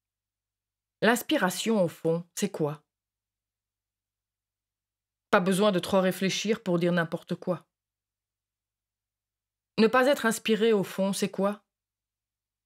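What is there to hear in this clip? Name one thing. A young woman speaks calmly in short phrases, close by.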